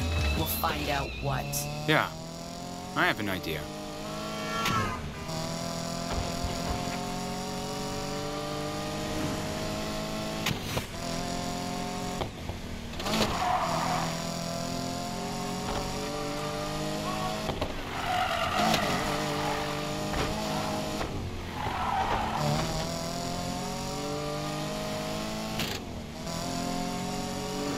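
A car engine revs hard, rising in pitch and dropping with each gear change.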